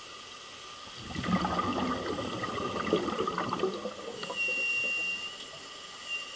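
Water churns and roars as divers plunge in.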